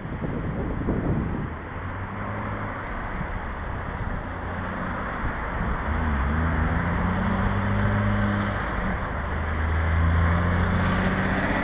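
Cars drive past on the road.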